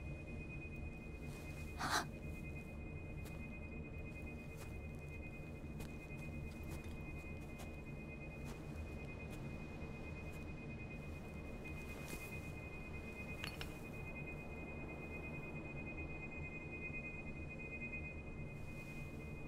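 A glowing crystal hums with a high, steady ringing tone.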